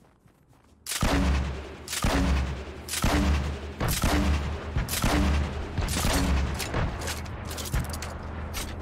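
A gun fires in loud, repeated bursts.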